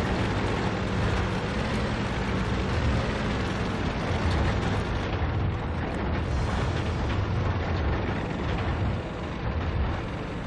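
A tank engine rumbles and clanks steadily.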